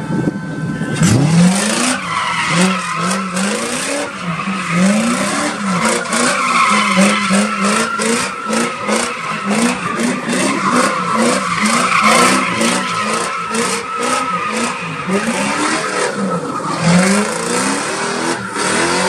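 A car engine revs hard, over and over, close by.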